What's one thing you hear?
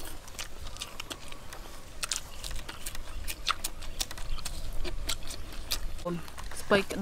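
Young women chew and smack their lips while eating, close by.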